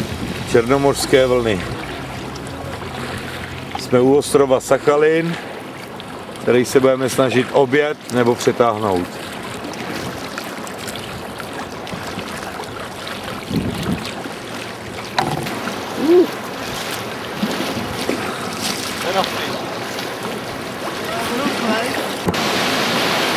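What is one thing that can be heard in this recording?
Waves lap and splash around a small boat.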